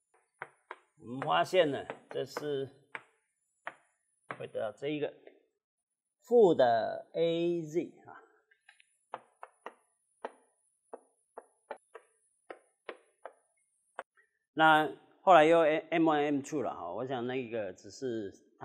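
A man lectures calmly through a clip-on microphone.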